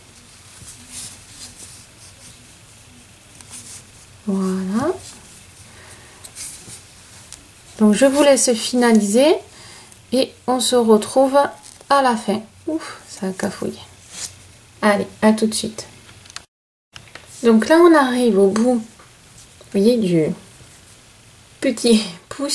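A crochet hook softly rustles through yarn.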